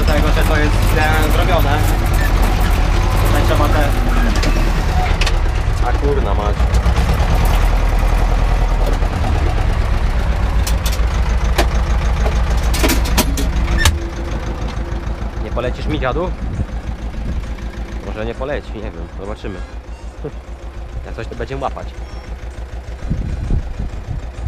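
A tractor engine rumbles steadily close by.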